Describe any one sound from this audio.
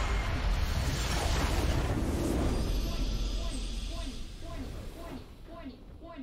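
A loud blast booms and rumbles, then fades.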